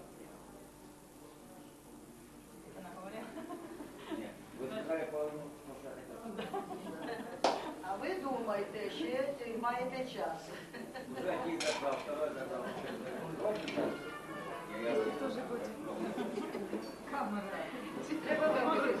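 Several adults chatter and laugh nearby.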